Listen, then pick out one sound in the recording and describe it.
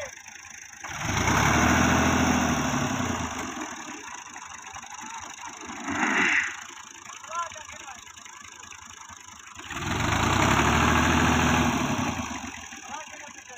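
A tractor engine revs hard and roars.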